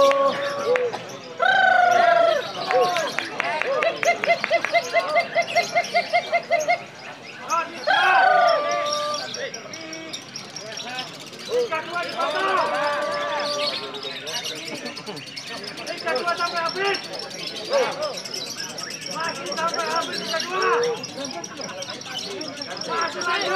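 Caged songbirds chirp and whistle in rapid trills nearby.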